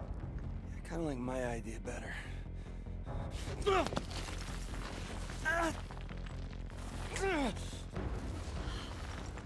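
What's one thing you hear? A young man replies defiantly.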